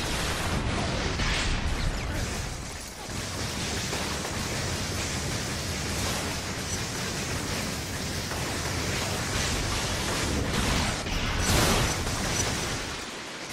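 Fiery explosions boom and roar.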